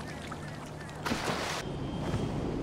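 Water splashes as a body plunges into a pool.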